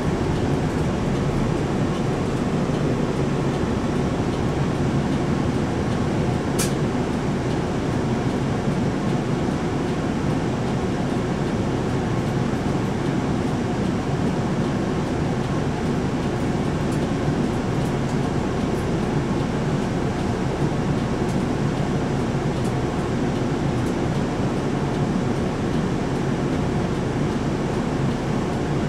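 Traffic hums along the road outside.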